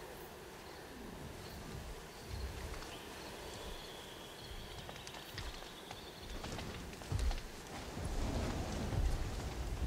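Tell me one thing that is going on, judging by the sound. Heavy dinosaur footsteps thud on the ground.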